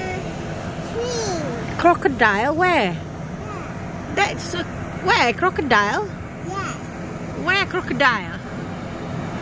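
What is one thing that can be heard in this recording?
A young child talks excitedly in a high voice close by.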